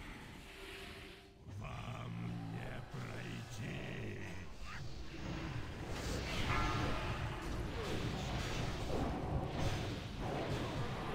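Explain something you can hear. Magic spells crackle and whoosh in a game battle.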